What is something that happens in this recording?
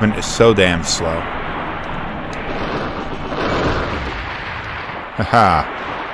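A machine gun fires in short bursts.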